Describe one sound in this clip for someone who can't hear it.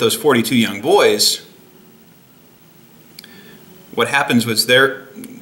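A young man speaks calmly and close to a microphone, with pauses.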